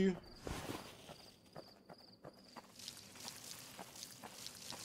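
Footsteps patter steadily on soft ground.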